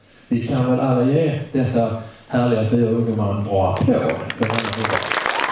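A middle-aged man speaks through a microphone in a large hall.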